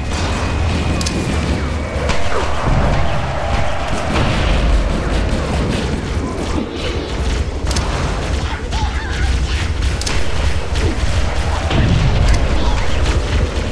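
Sharp gunshots crack repeatedly.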